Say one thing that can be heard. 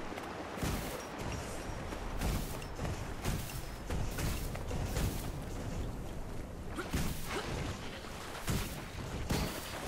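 Magic blasts and weapon hits burst out again and again in a fight.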